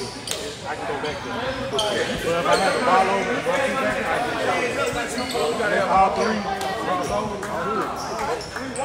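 Men talk and call out in a large echoing gym.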